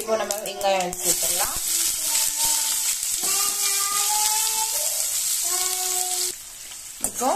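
Onions sizzle loudly in hot oil.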